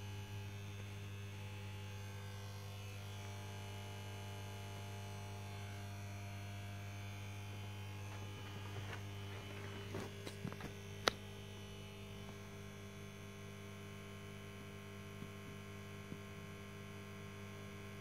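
A fruit machine hums steadily with a low electric drone.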